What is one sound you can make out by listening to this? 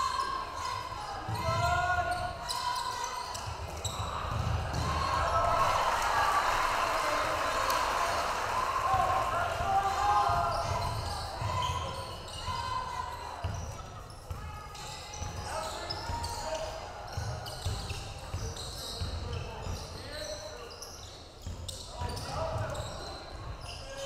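A crowd murmurs and cheers in an echoing gym.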